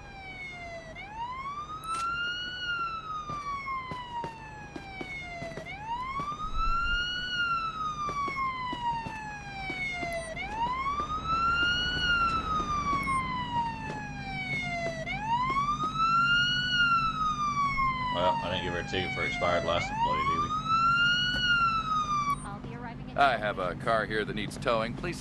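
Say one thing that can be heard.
A siren wails nearby, rising and falling steadily.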